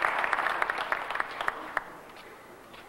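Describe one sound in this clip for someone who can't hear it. An audience claps in a large echoing hall.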